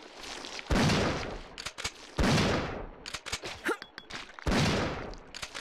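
A gun fires several shots in a row.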